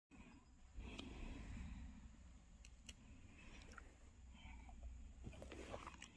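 A grape is plucked off its stem with a soft snap.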